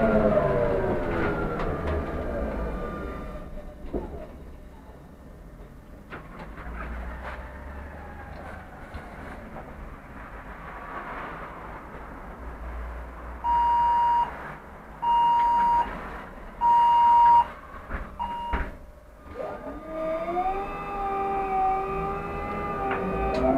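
A bus engine whines, falling in pitch as the bus slows and rising as it pulls away.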